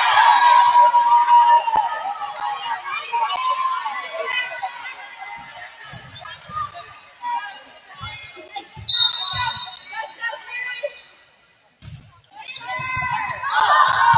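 A volleyball is hit with sharp thumps.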